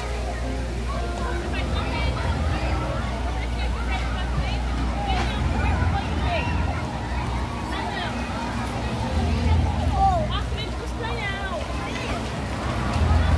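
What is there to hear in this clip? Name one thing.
Children shriek and squeal with excitement.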